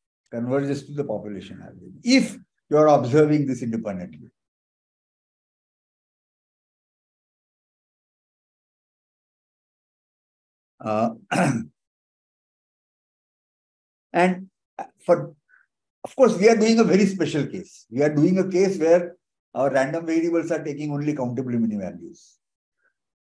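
An elderly man speaks calmly over an online call, with pauses.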